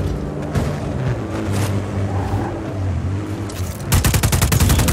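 An engine revs loudly.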